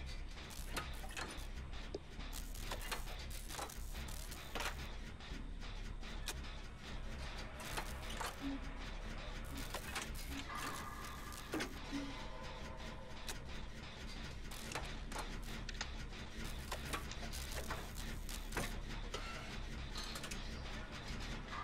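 Metal parts of a machine clank and rattle as it is worked on by hand.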